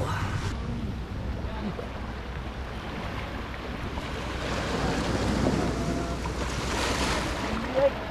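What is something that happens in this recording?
Water rushes and splashes nearby.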